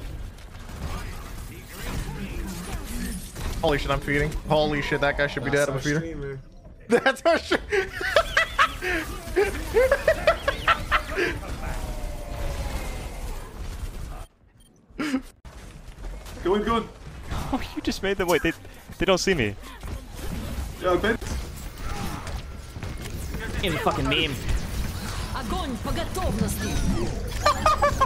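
Gunfire and explosions crackle in a fast action game.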